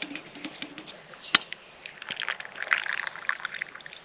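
A metal lid clinks against a metal cup.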